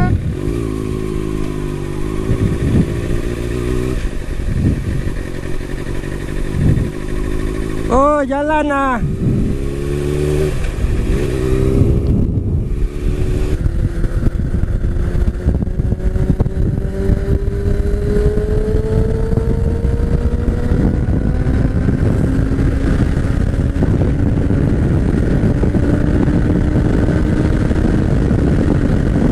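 A motorcycle engine hums and revs up as the motorcycle speeds up.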